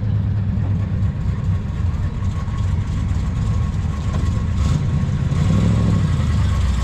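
A muscle car's engine rumbles deeply as it rolls slowly past.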